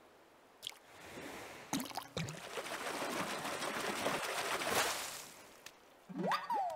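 Water splashes loudly as a fish is reeled in.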